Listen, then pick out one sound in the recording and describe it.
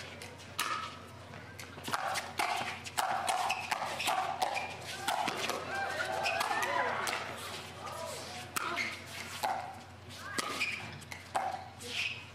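Paddles strike a plastic ball back and forth in a quick rally.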